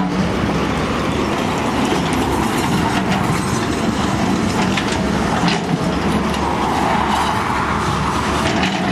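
Rocks and dirt scrape and knock against an excavator bucket.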